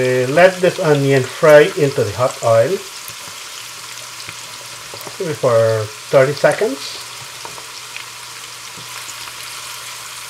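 Onions sizzle softly in a hot frying pan.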